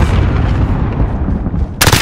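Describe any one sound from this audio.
Gunfire from an automatic rifle crackles in rapid bursts.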